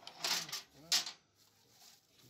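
Metal tools clink and clank on a metal surface.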